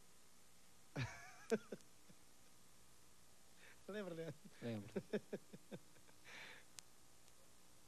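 A man speaks and laughs into a microphone, heard through a loudspeaker.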